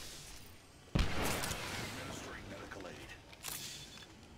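A medical syringe clicks and hisses as it is used.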